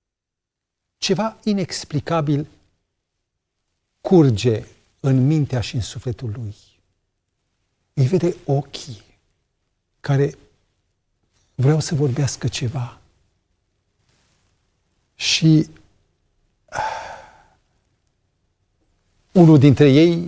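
A middle-aged man speaks expressively into a microphone, with long pauses.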